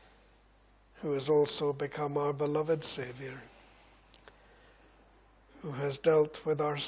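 A middle-aged man speaks slowly and solemnly into a microphone, with pauses.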